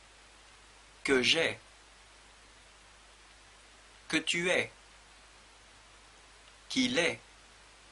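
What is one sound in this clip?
A man speaks close to a microphone in short, calm phrases with pauses between them.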